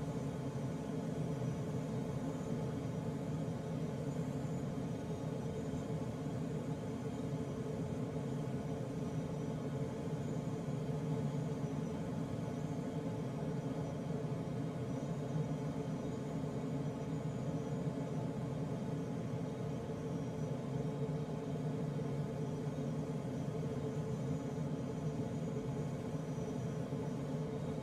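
Air rushes steadily past a glider's canopy in flight.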